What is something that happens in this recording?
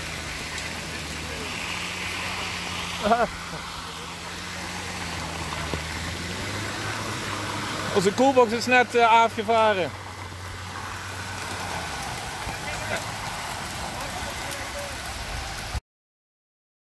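Tyres splash and crunch through wet hail slush.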